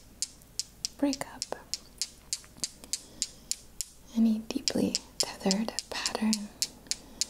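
A young woman whispers softly, close to a microphone.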